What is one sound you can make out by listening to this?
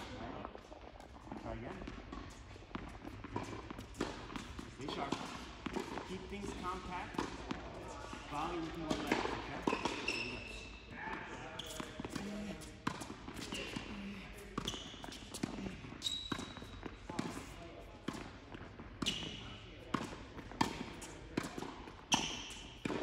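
Tennis balls bounce on a hard court.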